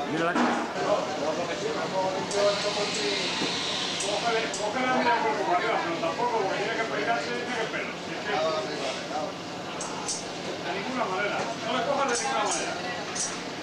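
Men and women chatter in the background, with a slight echo.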